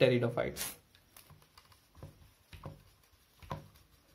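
A marker squeaks and taps while writing on a whiteboard.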